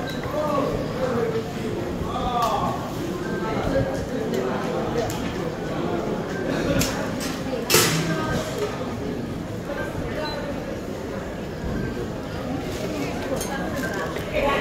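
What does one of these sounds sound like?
Metal gates clack as people pass through.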